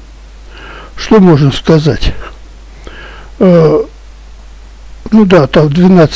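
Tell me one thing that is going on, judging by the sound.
An elderly man speaks close into a headset microphone in short bursts.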